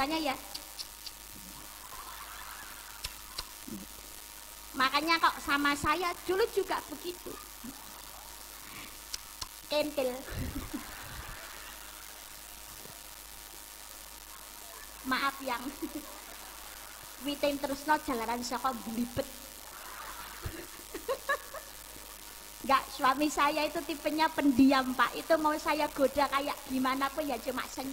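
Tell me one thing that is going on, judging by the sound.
A young woman speaks with animation into a microphone, heard through loudspeakers outdoors, with pauses between phrases.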